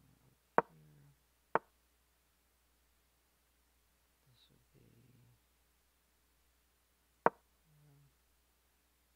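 A young man speaks quietly and briefly close to a microphone.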